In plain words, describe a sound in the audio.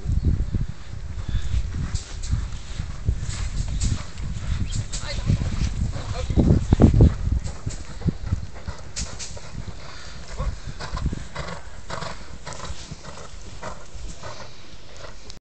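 Horses' hooves thud softly on sand.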